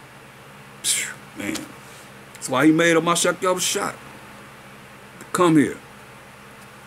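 An older man speaks calmly and close to the microphone, in short phrases.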